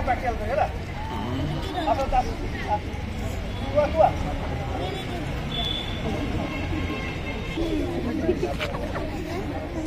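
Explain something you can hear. Men talk and call out to each other outdoors.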